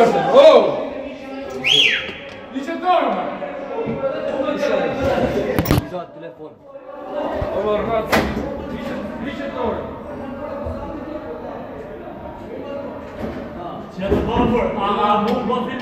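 Several men talk at once nearby.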